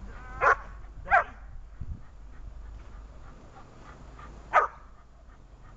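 A dog barks loudly in short bursts.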